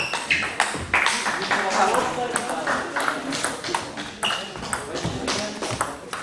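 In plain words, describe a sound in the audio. A table tennis ball clicks back and forth off paddles and the table in a quick rally.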